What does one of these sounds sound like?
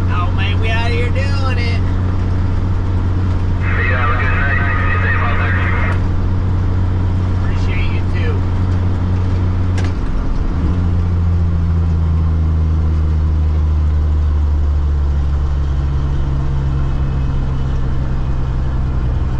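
A heavy truck engine drones steadily from inside the cab.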